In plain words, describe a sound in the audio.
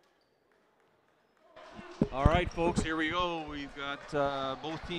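A volleyball is struck with a hollow thud.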